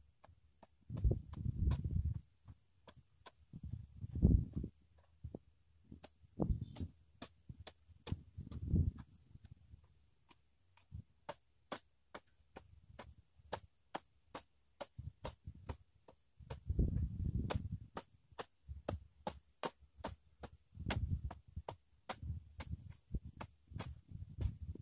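A hoe thuds repeatedly into soft soil.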